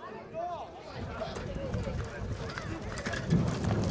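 A horse's hooves thud on grass as it trots past.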